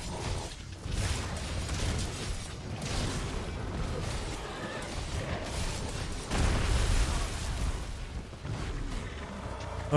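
Heavy crashes and rumbling thuds come from a creature's attacks.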